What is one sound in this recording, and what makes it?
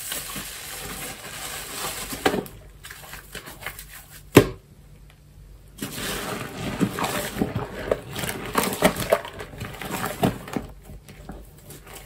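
Hands squeeze a soaked sponge, and water squelches wetly.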